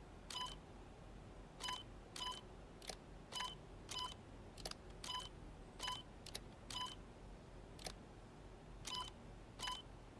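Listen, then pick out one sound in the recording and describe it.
Short electronic beeps sound repeatedly from a computer terminal.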